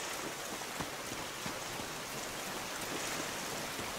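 A waterfall splashes and rushes steadily.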